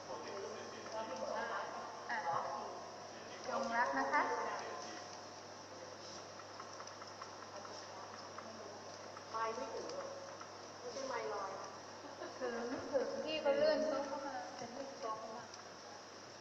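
A middle-aged woman talks into a microphone, heard through a loudspeaker.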